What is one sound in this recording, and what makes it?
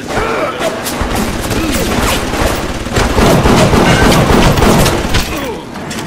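A revolver fires several shots.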